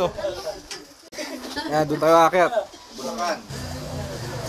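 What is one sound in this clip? Men talk nearby in a lively way, outdoors.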